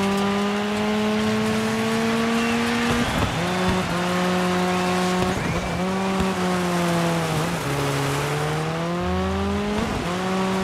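A rally car engine revs hard and shifts gears.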